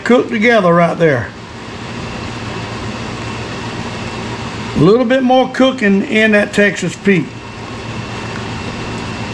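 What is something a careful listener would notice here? A wooden spoon stirs a thick mixture in a pot.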